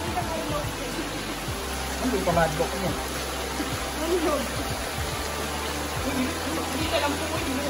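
Young people talk and call out nearby.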